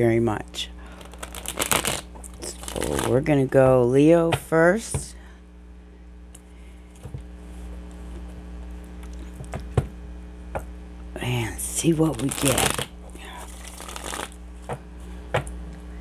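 Cards shuffle and tap on a table.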